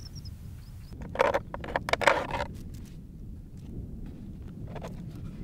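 Stones clack and scrape as they are stacked by hand.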